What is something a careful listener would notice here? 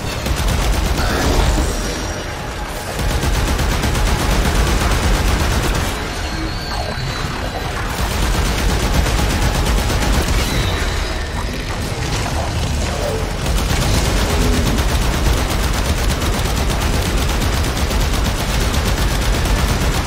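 Energy weapons crackle and buzz in steady, dense bursts.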